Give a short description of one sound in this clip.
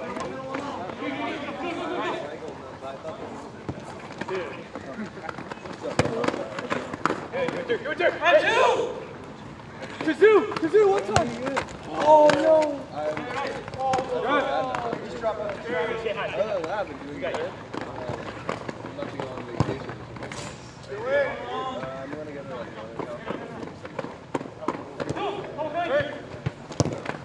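A ball is kicked with sharp thuds on a hard court.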